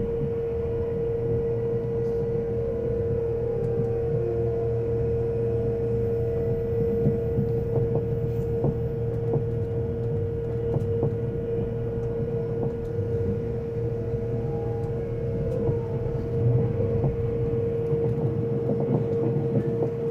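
A steady electric whine hums inside the train carriage.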